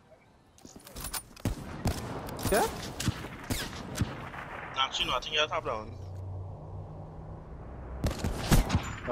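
Rifle shots crack in a video game.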